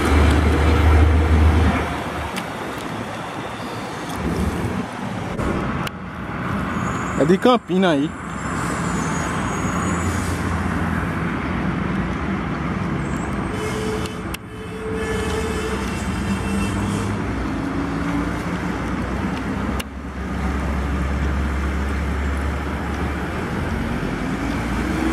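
Heavy truck engines rumble as they pass close by.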